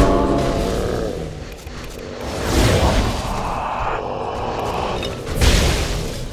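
Magic spells burst and crackle loudly.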